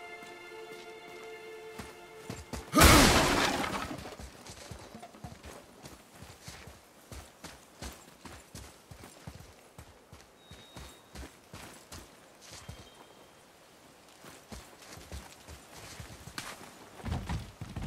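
Heavy footsteps crunch on dirt and stone.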